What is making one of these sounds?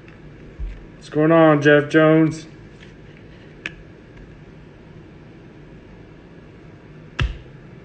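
A plastic card holder clicks and taps against a table.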